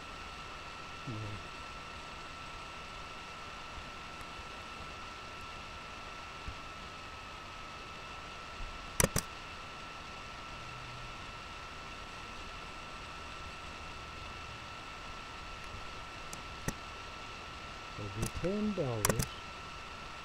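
A young man speaks quietly and calmly into a computer microphone.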